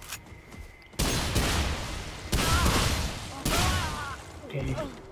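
A gun fires loud shots that ring out.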